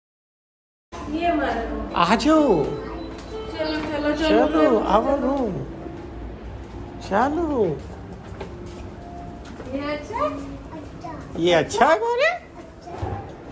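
A young girl chatters and squeals in a high voice.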